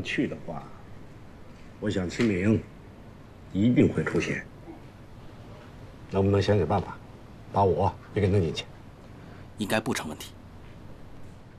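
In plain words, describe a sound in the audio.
A middle-aged man speaks in a low, serious voice close by.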